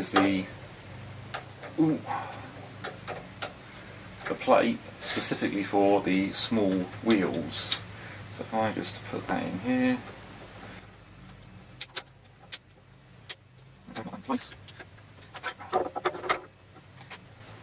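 Metal parts click and clank as a clamp is adjusted by hand.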